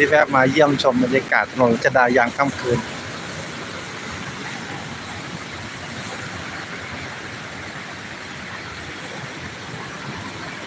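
City traffic rumbles steadily along a busy street.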